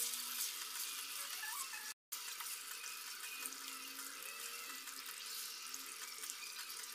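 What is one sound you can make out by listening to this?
A spatula scrapes and stirs through a thick sauce.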